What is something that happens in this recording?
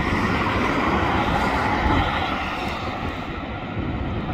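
A car drives past on a wet road, its tyres hissing as it fades away.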